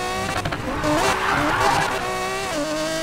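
Tyres screech on asphalt through a bend.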